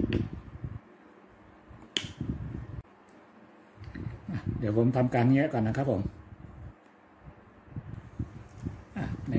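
A small plastic power adapter clicks and rattles as it is handled.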